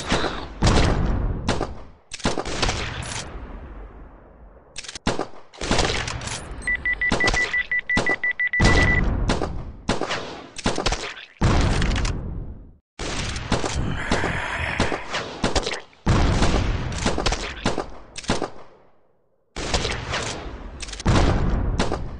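Explosions boom again and again.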